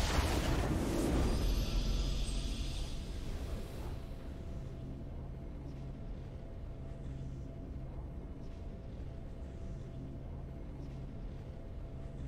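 A triumphant fanfare plays for the win.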